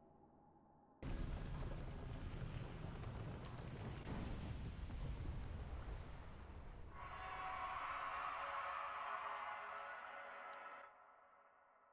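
A deep rumble roars, then slowly fades.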